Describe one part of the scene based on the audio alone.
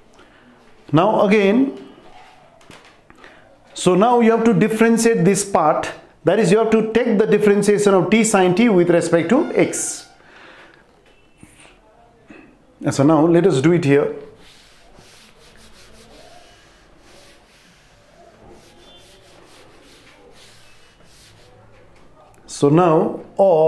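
A man speaks calmly and clearly, close by, in short bursts with pauses.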